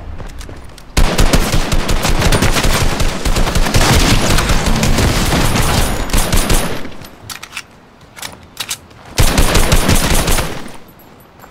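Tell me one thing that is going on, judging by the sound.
A rifle fires rapid shots.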